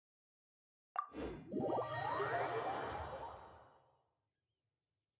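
A shimmering magical whoosh swells and slowly fades.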